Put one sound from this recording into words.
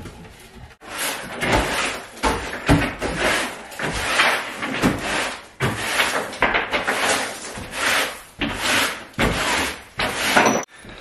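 A broom sweeps across a wooden floor in quick, scratchy strokes.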